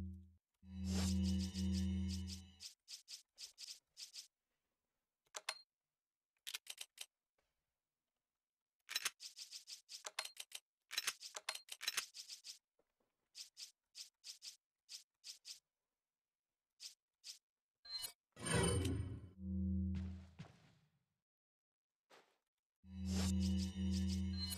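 Short menu ticks click rapidly, one after another.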